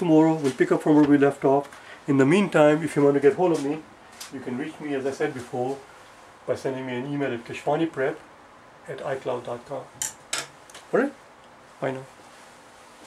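An older man speaks calmly and clearly, close by.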